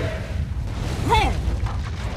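A magic spell bursts with a whooshing crackle.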